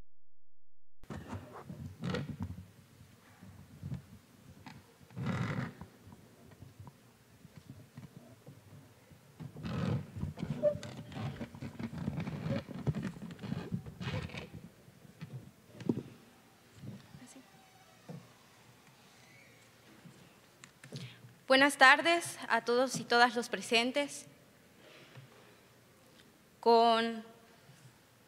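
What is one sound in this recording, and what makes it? A young woman speaks calmly, close to a microphone.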